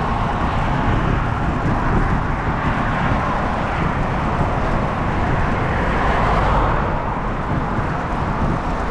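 Wind buffets and rumbles loudly against the microphone.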